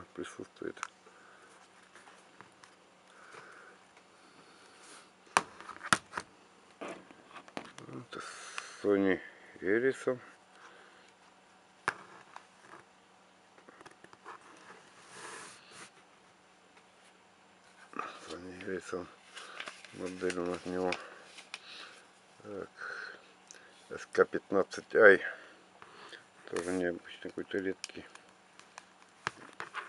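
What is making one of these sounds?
A plastic phone clicks and knocks as it is handled and set down on a table.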